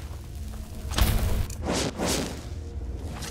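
A magic spell bursts with a loud crackling whoosh.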